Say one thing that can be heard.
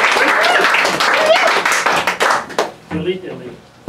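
A crowd cheers and claps loudly in a small room.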